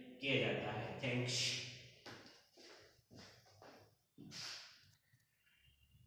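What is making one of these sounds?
A middle-aged man speaks clearly and slowly, close by.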